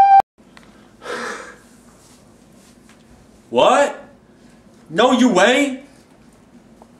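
A young man speaks loudly and forcefully close by.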